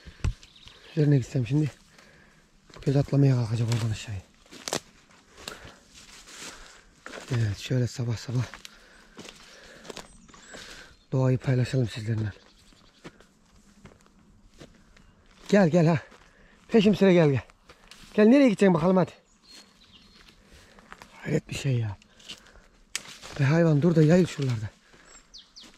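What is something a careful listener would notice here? A cow moos nearby, in long low calls outdoors.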